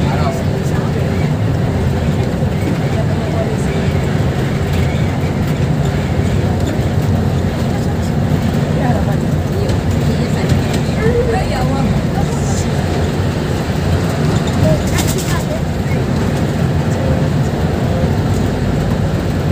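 A bus engine rumbles steadily from inside the cabin as the bus drives along.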